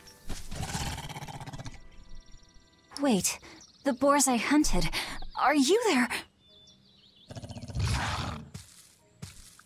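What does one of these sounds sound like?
Boars grunt and snort.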